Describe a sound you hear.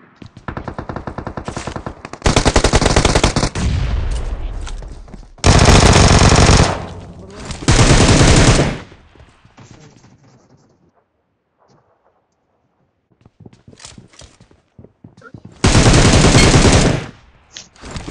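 Rifles fire in rapid, loud bursts.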